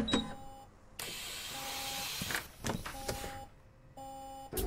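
A bus door opens and closes with a hiss of air.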